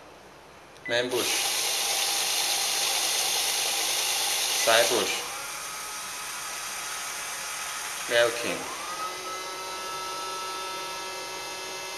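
A robot vacuum cleaner whirs and hums as it runs.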